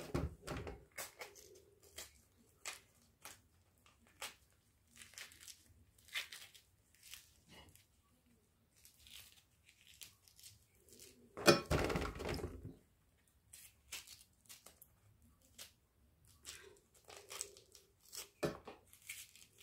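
Hands peel a tangerine, with soft tearing and crackling of the peel.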